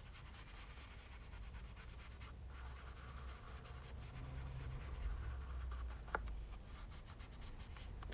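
A small ink pad dabs and scrapes against card.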